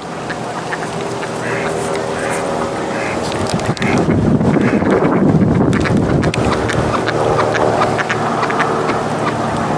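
Ducks quack on the water.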